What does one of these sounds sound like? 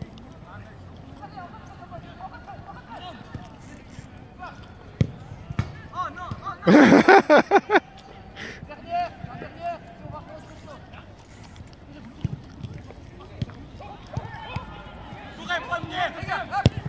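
Young players shout and call out to each other outdoors.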